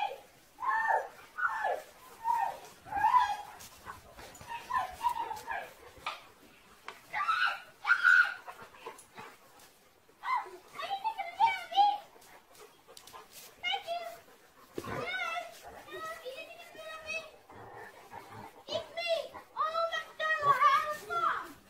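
Dogs growl and whine playfully in short bursts.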